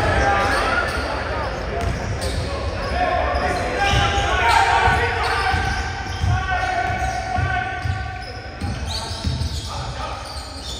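A basketball bounces with dull thumps.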